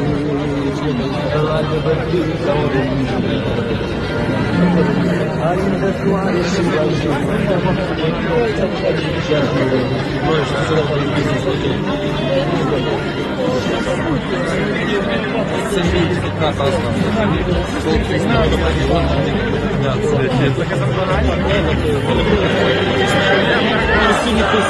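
A large crowd of men and women chants loudly outdoors.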